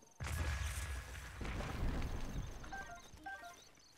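A tree trunk crashes heavily to the ground.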